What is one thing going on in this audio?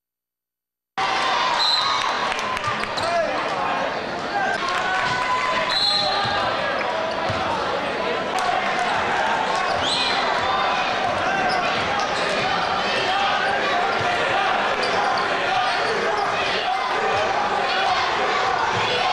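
A large crowd chatters and cheers, echoing through an indoor arena.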